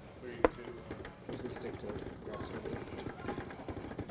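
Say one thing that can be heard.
Powder pours into a plastic bucket of liquid.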